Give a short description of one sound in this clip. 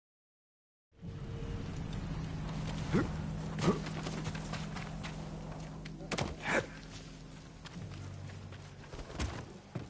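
Footsteps thud quickly on wet grass.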